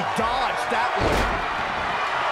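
A heavy thud sounds as a wrestler slams onto the ring mat.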